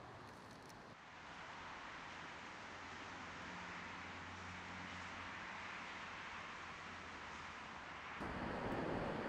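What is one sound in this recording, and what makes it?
Wind rustles through the trees outdoors.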